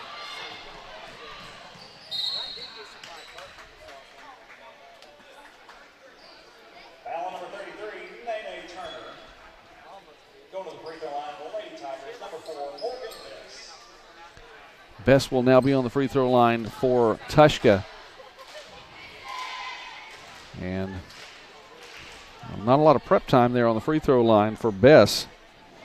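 A crowd murmurs and talks in a large echoing gym.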